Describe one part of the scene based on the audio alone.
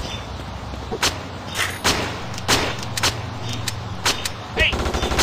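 Sharp hits and shots crack in quick bursts.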